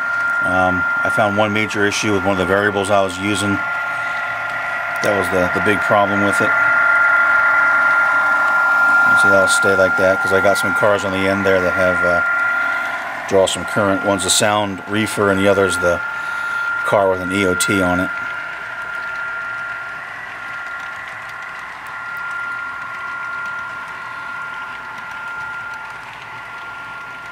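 A model train rumbles steadily along the track.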